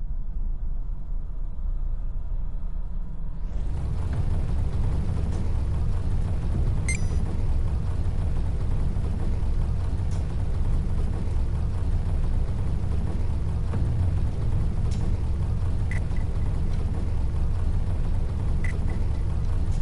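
A spacecraft engine roars with a deep, steady rumble.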